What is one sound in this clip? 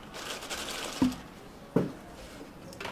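Glass jars knock down onto a counter.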